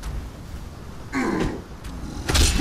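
Weapon blows thud and crunch against creatures.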